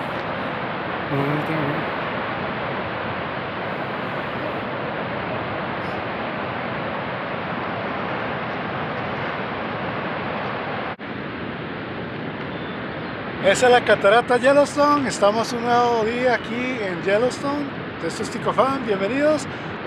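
A waterfall roars steadily in the distance.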